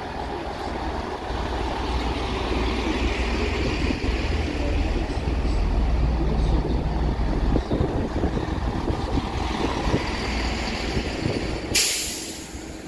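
A train rumbles and rattles past on the rails outdoors.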